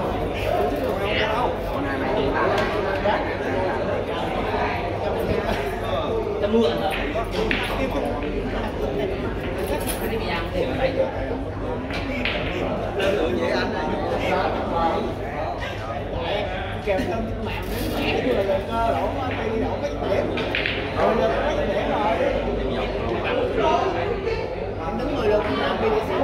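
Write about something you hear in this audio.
Many people chatter in a busy, echoing hall.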